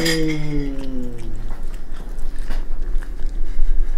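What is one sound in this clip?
A small dog licks and smacks its lips.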